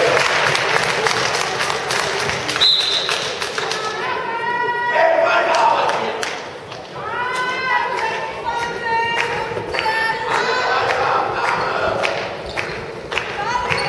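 A ball bounces with hard thuds in a large echoing hall.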